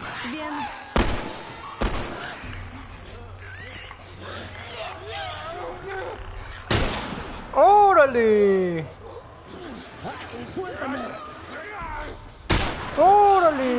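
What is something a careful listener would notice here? Loud sharp blows and bangs ring out a few times.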